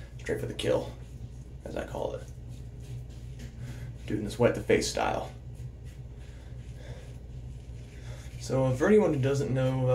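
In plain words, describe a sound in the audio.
A shaving brush swishes against stubble.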